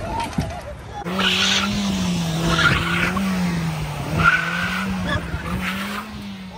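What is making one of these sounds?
A car engine revs hard.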